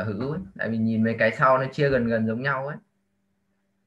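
A young woman speaks over an online call.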